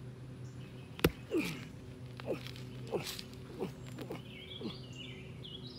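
A wooden stake is struck with sharp knocks.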